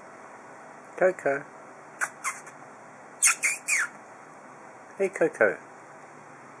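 Kittens mew in short, high cries.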